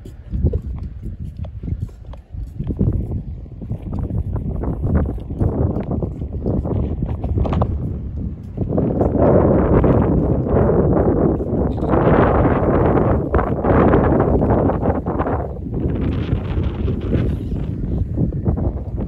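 Wind blows and buffets outdoors in strong gusts.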